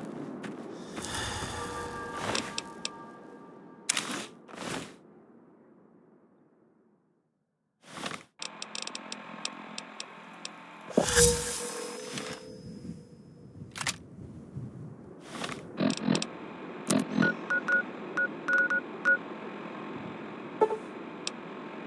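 Game menu clicks and beeps sound as items are picked.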